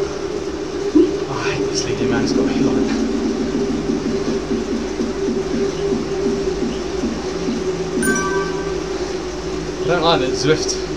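A man talks close to a microphone in short remarks.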